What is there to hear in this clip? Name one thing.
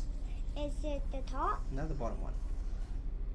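A young boy speaks briefly close to a microphone.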